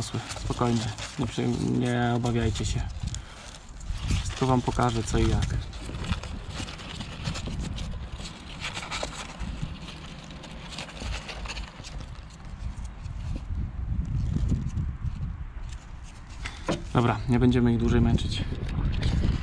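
Small rabbits rustle and shuffle against cardboard.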